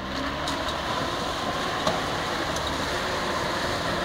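Water splashes under a vehicle's tyres.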